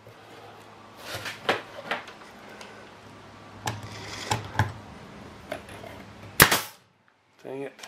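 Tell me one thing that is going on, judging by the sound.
Wooden boards knock and scrape as hands fit them together.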